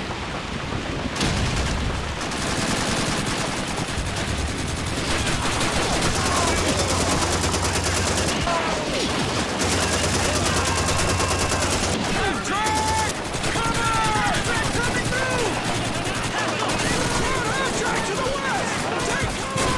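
Distant rifle and machine gun fire crackles all around.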